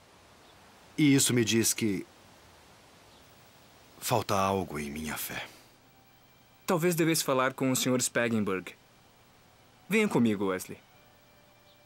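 A man speaks calmly and earnestly up close.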